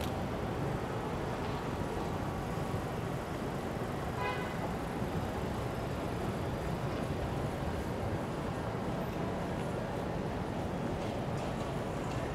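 Steady city traffic hums in the distance outdoors.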